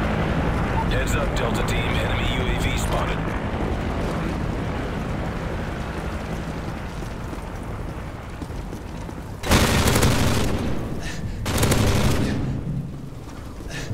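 Footsteps run on hard ground.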